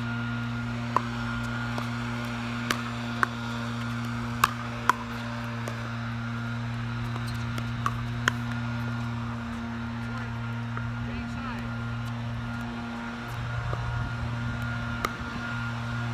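Paddles hit a plastic ball with sharp pops, back and forth.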